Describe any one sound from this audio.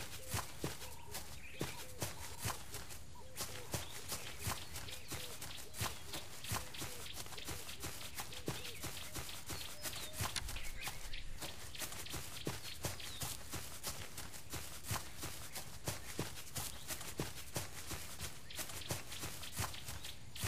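A large cat's paws pad steadily on dirt.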